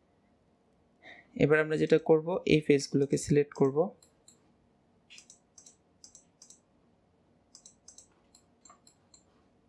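A computer mouse clicks several times.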